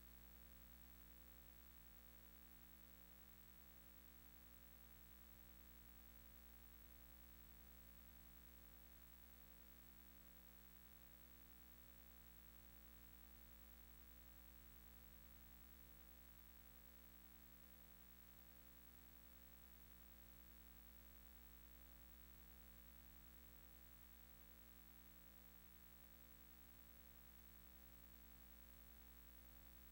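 Quiet, steady electronic game music plays.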